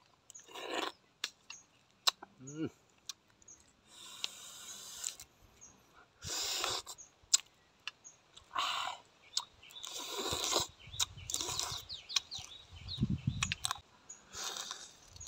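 A man sucks food from his fingers with wet smacking sounds.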